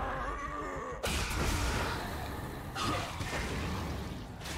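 Bursts of spells in a video game crash and whoosh.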